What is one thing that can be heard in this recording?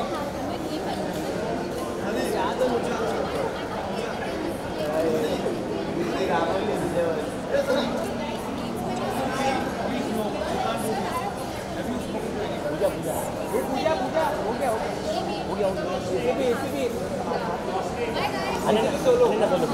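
A second young woman answers and chats close by.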